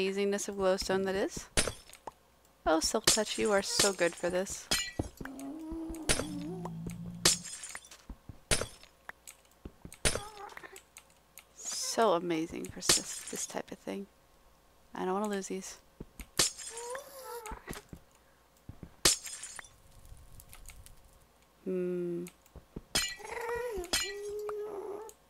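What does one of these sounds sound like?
A pickaxe taps and breaks blocks with brittle, glassy cracks.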